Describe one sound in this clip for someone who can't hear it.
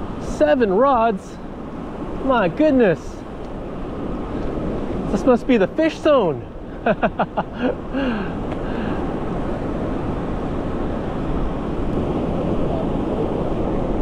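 Wind blusters steadily across the microphone outdoors.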